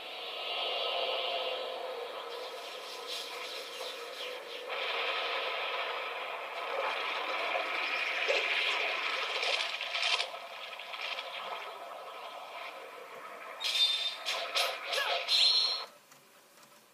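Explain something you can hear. A cartoon soundtrack with music and sound effects plays from a television loudspeaker.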